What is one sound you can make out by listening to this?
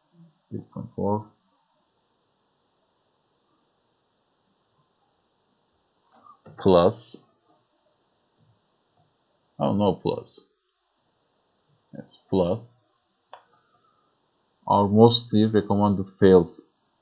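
A young man speaks calmly in short phrases through a headset microphone.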